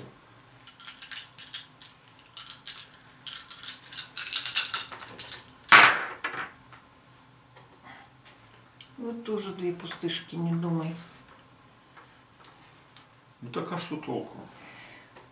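Plastic game pieces click and clack on a board.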